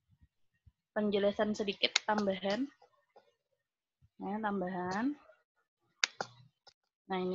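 A young woman talks calmly through an online call.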